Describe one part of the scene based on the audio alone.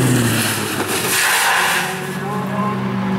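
A car crashes and scrapes against a metal guardrail.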